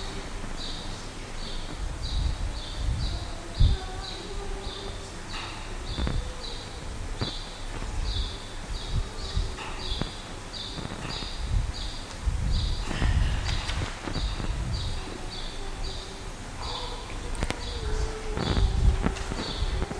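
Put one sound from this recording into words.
A man talks quietly at a distance in a large echoing hall.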